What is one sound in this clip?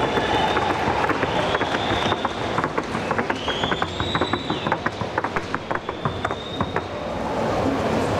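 A horse's hooves beat quickly on packed dirt.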